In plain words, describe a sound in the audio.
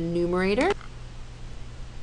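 Correction tape rolls across paper.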